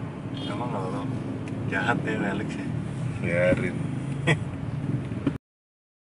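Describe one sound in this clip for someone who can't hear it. A man laughs close by.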